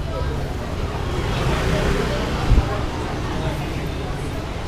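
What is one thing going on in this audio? Motor scooters hum along a busy street nearby.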